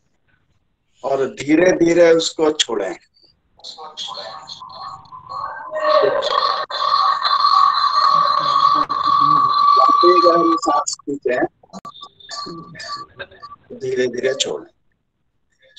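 An elderly man speaks through an online call, heard over a small speaker.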